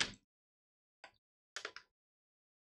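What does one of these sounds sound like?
Scissors snip through a foil bag.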